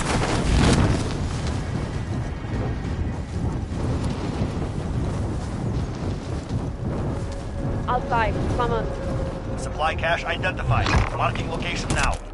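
Wind flutters through an open parachute.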